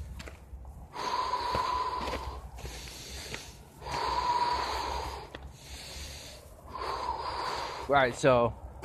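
A gas torch flame roars in short bursts.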